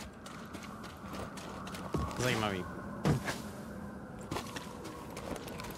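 Footsteps thud on soft ground.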